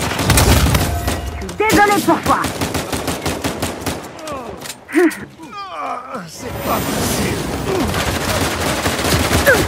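Pistol shots crack.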